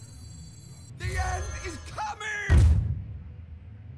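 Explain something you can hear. A fiery magic blast bursts with a crackling boom.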